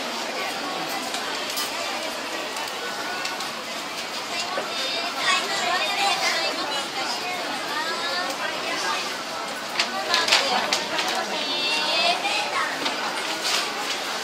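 A crowd of shoppers murmurs and chatters nearby in an indoor space.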